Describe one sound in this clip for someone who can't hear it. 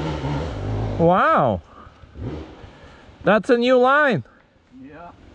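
A dirt bike engine revs up sharply in short bursts.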